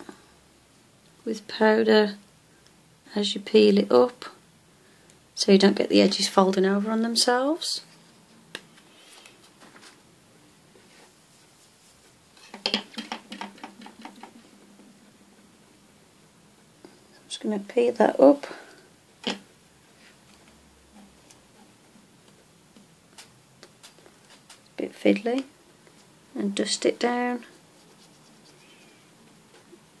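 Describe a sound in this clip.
A brush dabs softly on a plastic surface.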